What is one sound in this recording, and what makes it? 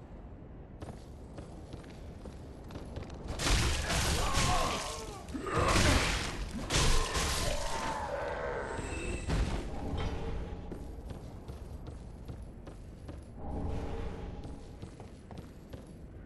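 Armoured footsteps clank on wooden boards.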